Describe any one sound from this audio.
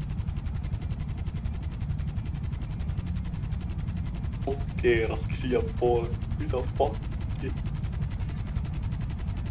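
A helicopter engine drones and its rotor thrums steadily.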